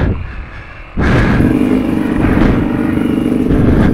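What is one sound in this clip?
A motorcycle engine drones steadily as a dirt bike approaches.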